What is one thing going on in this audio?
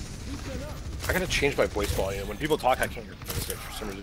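A video game beam weapon fires with a loud buzzing hum.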